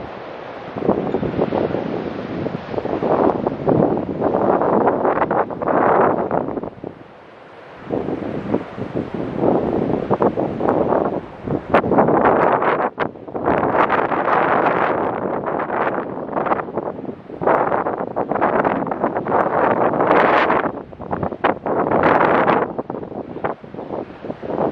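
Wind blusters outdoors.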